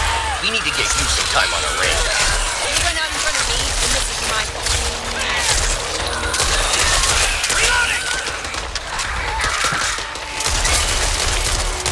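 Zombies snarl and groan close by.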